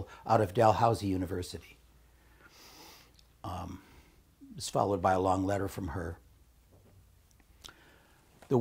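An older man reads aloud calmly through a microphone, pausing between phrases.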